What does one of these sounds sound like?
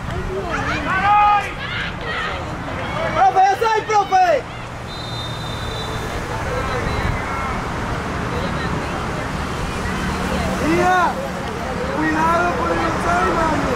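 Young girls shout to each other across an open field.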